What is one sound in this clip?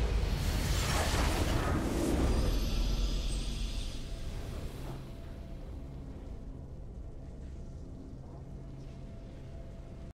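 A short triumphant victory tune plays, then fades to a quiet hum.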